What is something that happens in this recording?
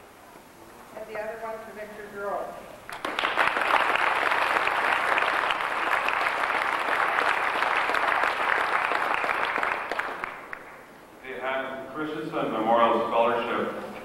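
An elderly woman reads out names over a microphone in an echoing hall.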